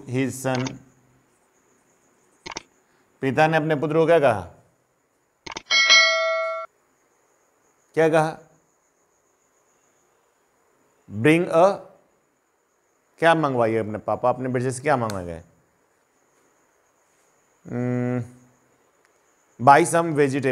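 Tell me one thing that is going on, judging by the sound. A middle-aged man speaks in a teaching tone, in short bursts with pauses.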